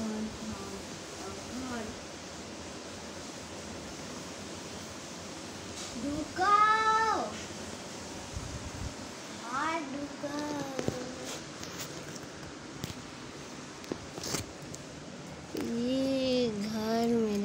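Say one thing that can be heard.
A young child squeals and calls out playfully close by.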